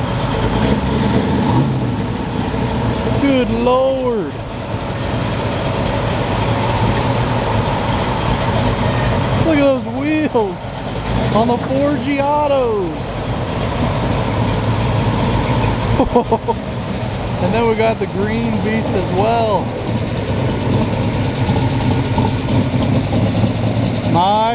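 A big car engine idles with a deep, lumpy rumble.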